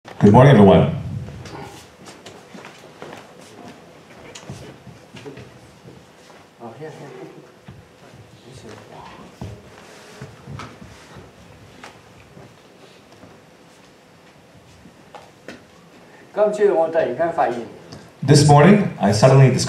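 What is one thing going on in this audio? A young man speaks loudly into a microphone over loudspeakers in an echoing hall.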